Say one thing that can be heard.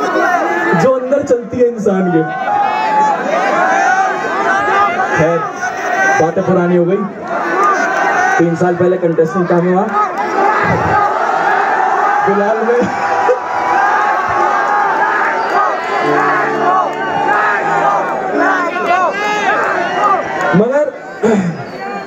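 A young man raps energetically into a microphone through loud speakers.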